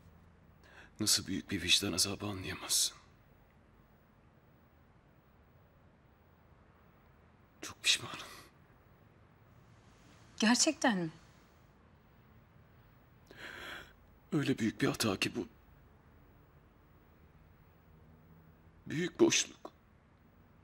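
A young man speaks softly and with emotion, close by.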